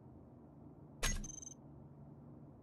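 A short electronic whoosh sounds as the menu closes.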